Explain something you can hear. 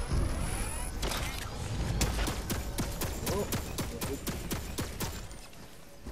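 Quick footsteps patter over the ground.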